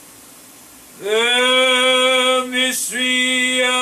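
An elderly man chants in a steady sung voice through a microphone.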